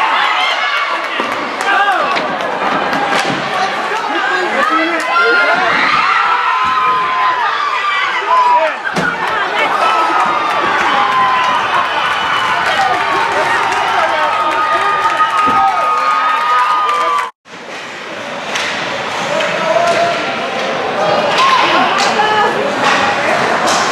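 A crowd of spectators cheers and shouts in an echoing rink.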